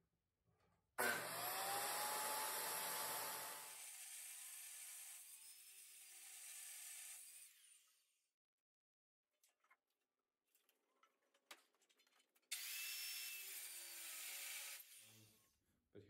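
An angle grinder whines loudly as it cuts through steel.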